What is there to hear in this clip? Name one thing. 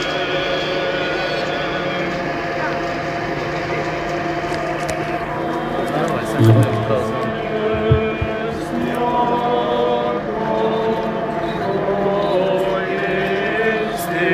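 A group of men chants together in unison, close by and outdoors.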